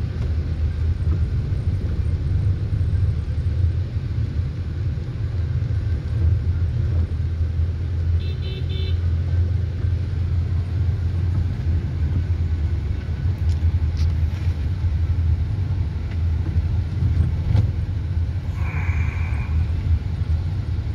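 Rain patters on a windscreen.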